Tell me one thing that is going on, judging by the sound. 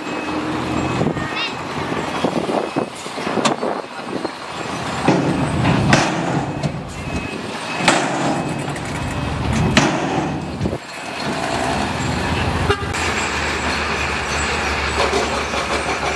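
Rocks scrape and clatter under a bulldozer blade.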